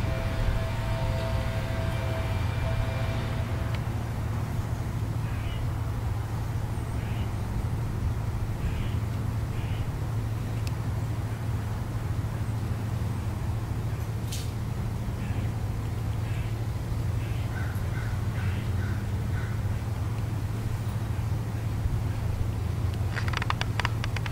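Heavy cloth rustles softly as a flag is folded.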